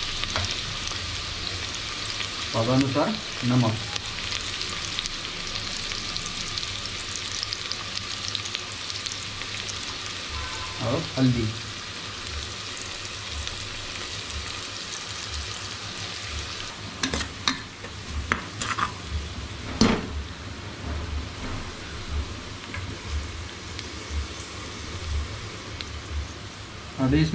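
Onions sizzle in hot oil.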